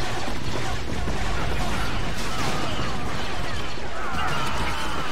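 Blaster shots zap rapidly, over and over.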